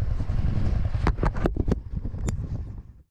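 Gloved fingers knock and rub against a microphone close by.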